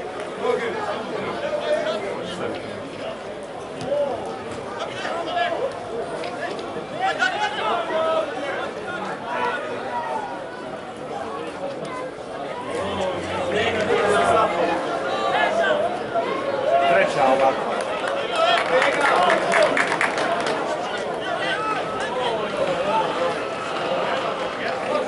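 A crowd chants and cheers across an open stadium.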